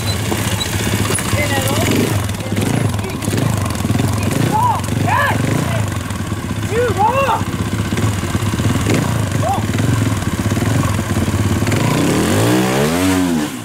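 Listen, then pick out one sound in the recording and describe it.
Loose rocks clatter under motorcycle tyres.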